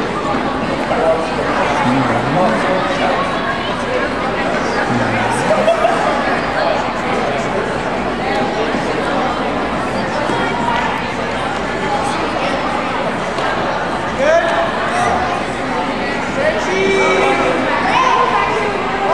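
A large crowd chatters and calls out in an echoing hall.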